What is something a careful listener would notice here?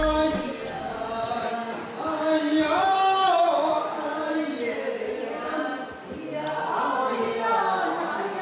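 A young woman sings a slow, drawn-out melody through a microphone.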